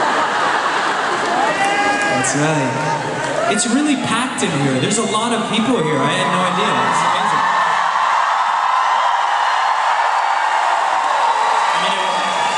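A large crowd cheers and screams loudly in a big echoing arena.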